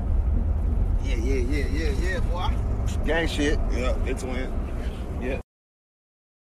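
A young man sings in a wavering voice close to a phone microphone.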